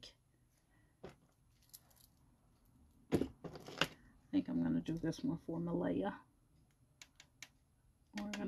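Small objects tap and click on a hard table.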